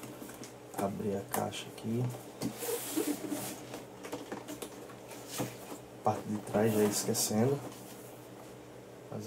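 A cardboard box scrapes and rustles as hands turn it over.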